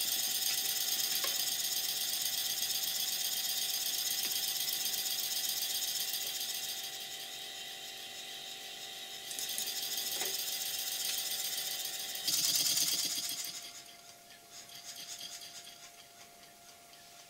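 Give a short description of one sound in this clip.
A small steam engine chuffs rapidly with a steady hiss of steam.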